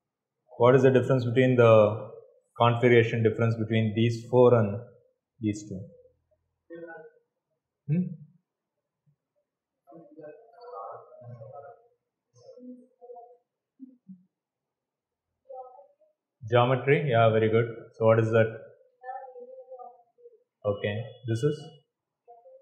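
A man lectures calmly nearby, pausing often.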